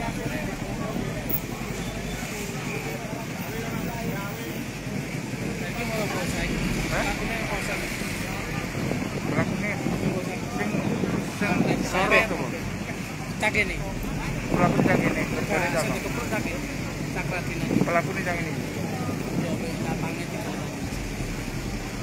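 A crowd of men talk and shout over one another outdoors.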